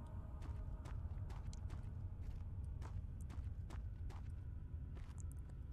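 Footsteps thud slowly and steadily on a wooden floor.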